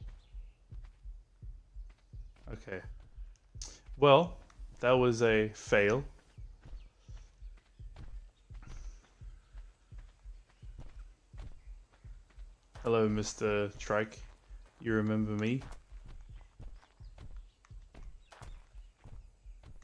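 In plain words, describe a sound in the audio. Footsteps rustle steadily through grass and undergrowth.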